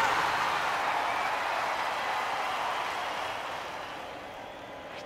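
A stadium crowd cheers loudly, then fades.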